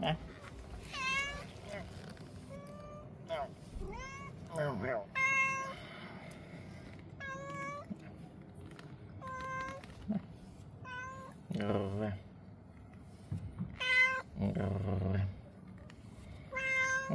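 A cat meows repeatedly up close.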